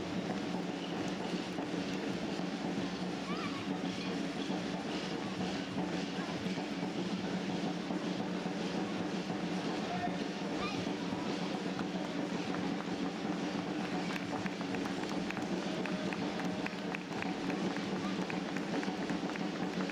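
Many runners' shoes patter on the road.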